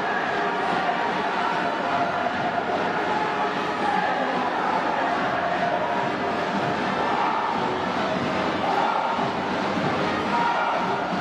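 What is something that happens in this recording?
A large stadium crowd chants and cheers steadily, echoing across the stands.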